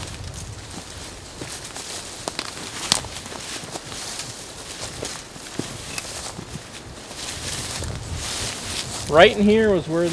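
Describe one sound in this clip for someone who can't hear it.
Footsteps crunch through dry leaves and brush outdoors.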